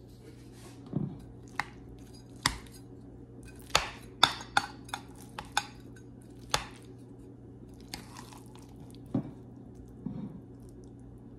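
A metal spatula scrapes and taps against a glass baking dish.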